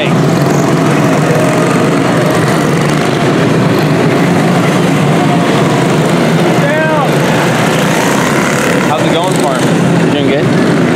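Many small kart engines buzz loudly and steadily as the karts race outdoors.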